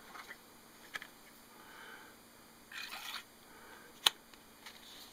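A knife blade clicks into a hard plastic sheath.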